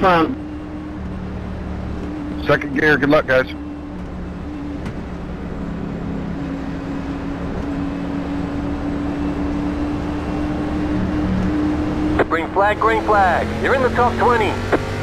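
A race car engine drones steadily and slowly rises in pitch.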